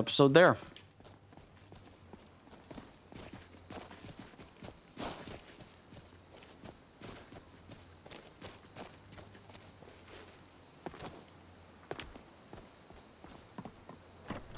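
Footsteps crunch on gravel and stone.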